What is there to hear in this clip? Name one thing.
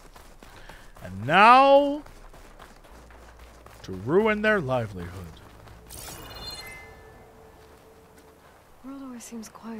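A man exclaims with animation into a close microphone.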